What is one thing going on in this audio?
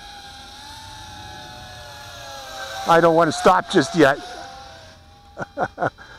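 A small drone's motors whine steadily overhead.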